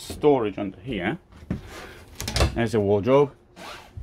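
A wooden cabinet door swings open with a knock.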